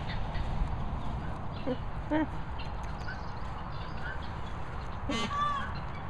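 A dog pads and sniffs across wet grass.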